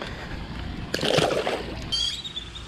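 A fish splashes into the water.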